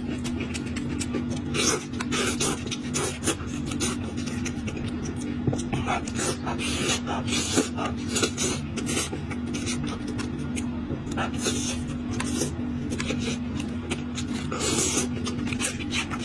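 A man blows out air through pursed lips.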